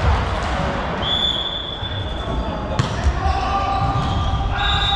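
Sneakers squeak sharply on a hard court floor in a large echoing hall.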